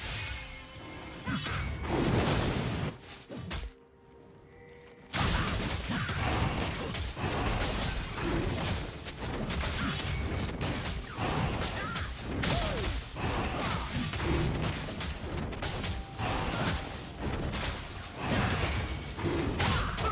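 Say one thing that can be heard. Game sound effects of spells and blows crackle and thud.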